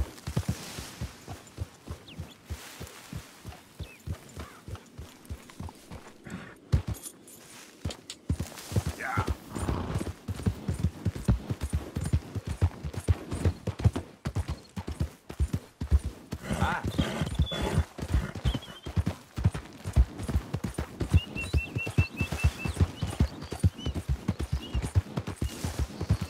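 A horse gallops over grass and dirt, hooves thudding.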